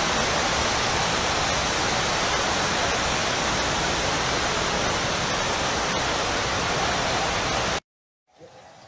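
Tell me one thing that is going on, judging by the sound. Floodwater rushes and churns across a flooded floor.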